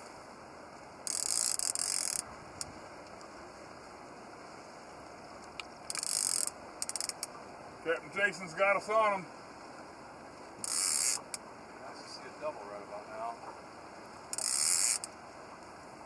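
A fishing reel whirs in short bursts.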